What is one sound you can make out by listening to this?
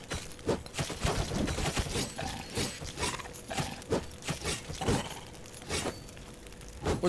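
Blades clash and strike in quick, sharp hits.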